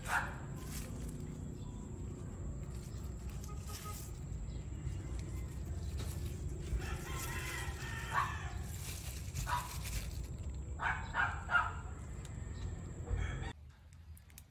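Leaves rustle as a hand brushes through them.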